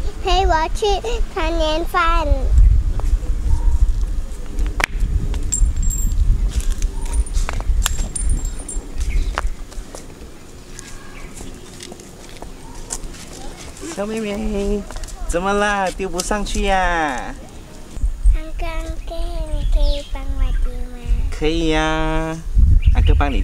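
A young girl speaks close by in a high, eager voice.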